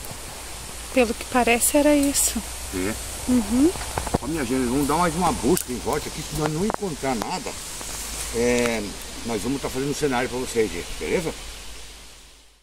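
An elderly man speaks calmly up close.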